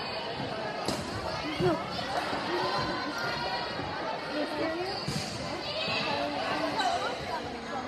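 A volleyball is struck by players' hands.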